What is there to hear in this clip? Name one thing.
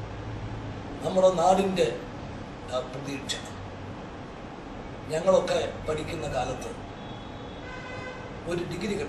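An elderly man speaks calmly and slowly, close to a microphone, with pauses.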